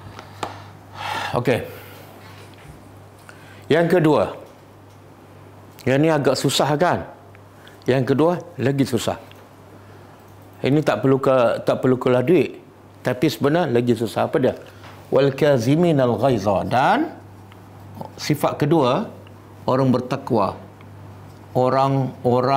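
An elderly man speaks in bursts, calmly explaining, close to a microphone.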